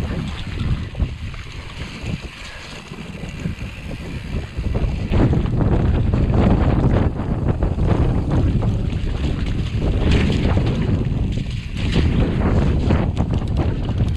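Wind rushes loudly across an open, exposed hillside.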